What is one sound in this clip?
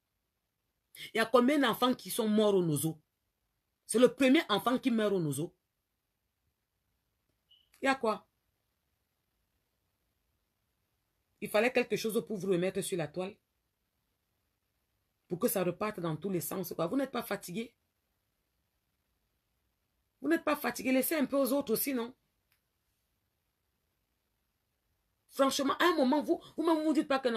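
A woman speaks with animation, close to a phone microphone, in short bursts with pauses.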